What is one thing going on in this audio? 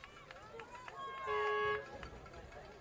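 A referee's whistle blows once, briefly.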